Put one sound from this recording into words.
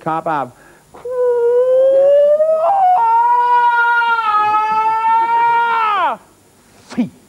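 A middle-aged man sings a long, loud note that rises and then holds.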